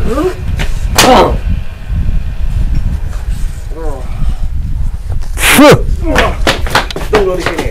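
Blows thud in quick scuffling.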